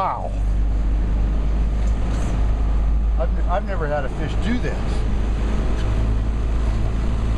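Water rushes and churns close by.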